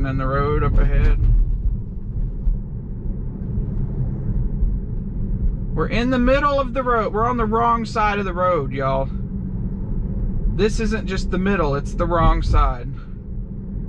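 A man speaks calmly from close by inside the car.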